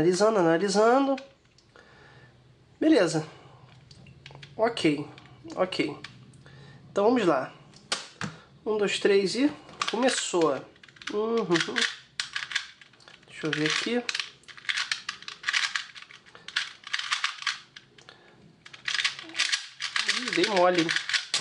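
A plastic puzzle cube clicks and rattles as it is twisted quickly.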